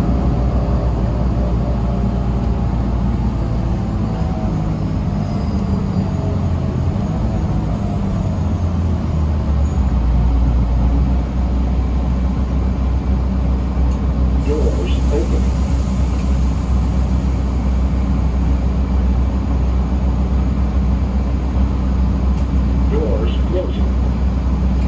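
A bus engine rumbles steadily, heard from inside the bus.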